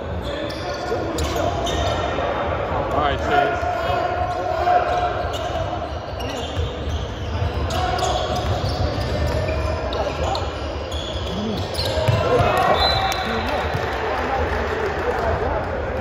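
Children and young players shout and call out across an echoing gym.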